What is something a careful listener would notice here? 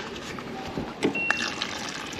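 Water pours from a dispenser into a cup.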